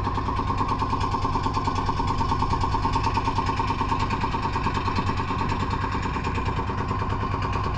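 A boat engine chugs steadily and close by.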